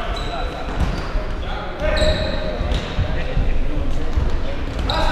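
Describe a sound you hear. A ball thuds against feet and bounces on a wooden floor.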